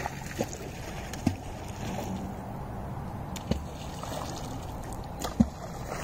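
Small waves lap softly against the shore.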